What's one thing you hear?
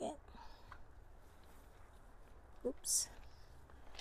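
Plastic netting rustles as a hand pushes it aside.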